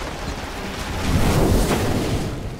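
Video game battle effects burst with loud magical blasts and clashes.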